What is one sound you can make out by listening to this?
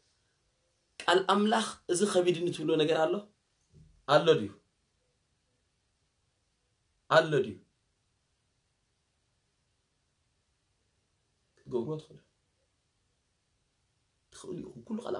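A young man speaks calmly and close to the microphone, in short bursts with pauses.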